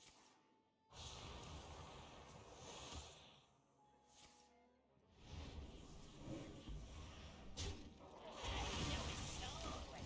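A card game plays chiming and whooshing sound effects.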